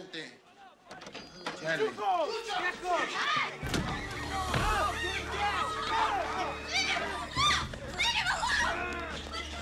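A crowd of men shouts and clamours in a noisy room.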